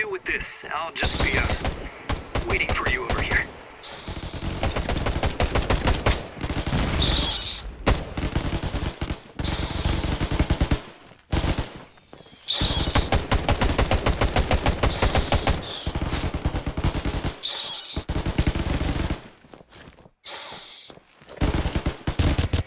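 A gun fires in rapid, rattling bursts.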